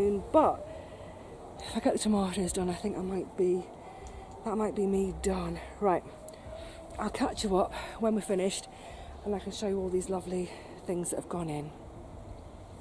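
An older woman talks calmly close to the microphone.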